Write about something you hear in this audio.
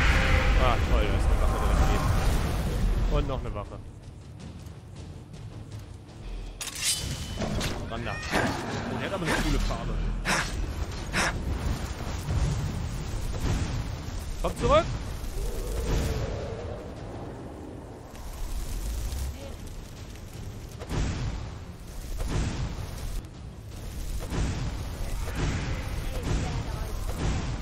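Lightning spells crackle and buzz in bursts.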